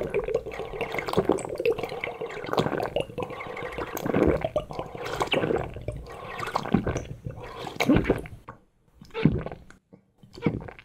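Liquid gurgles and bubbles in a glass.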